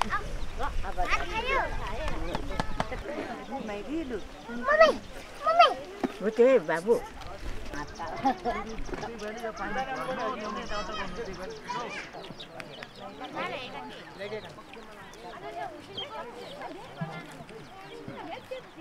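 Several women chat and talk over one another outdoors.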